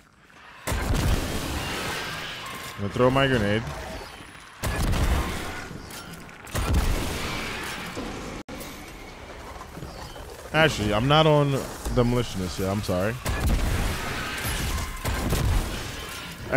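Video game gunfire and explosions boom in bursts.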